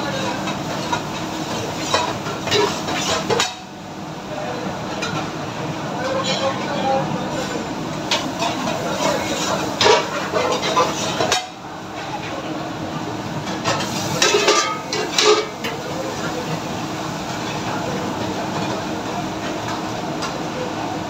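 An extractor fan hums steadily.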